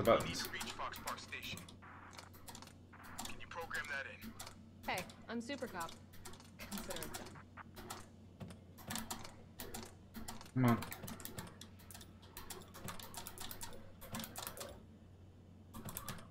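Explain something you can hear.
Buttons click on a panel, one press after another.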